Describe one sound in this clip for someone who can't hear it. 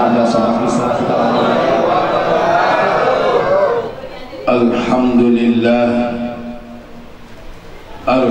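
An elderly man speaks through a microphone and loudspeakers, with a slow, chanting delivery.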